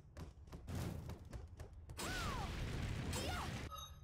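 Fire bursts with a loud roar.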